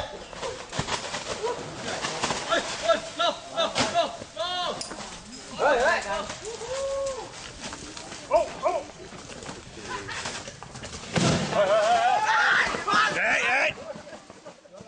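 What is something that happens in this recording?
A man shouts excitedly nearby.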